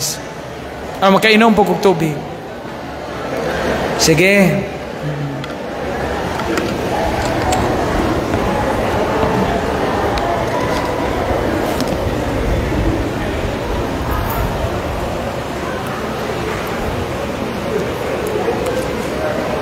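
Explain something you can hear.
A man speaks through a microphone and loudspeakers in a large echoing hall.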